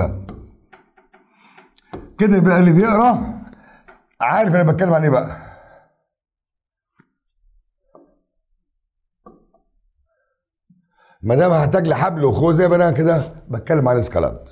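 An older man speaks calmly and clearly, close to a microphone.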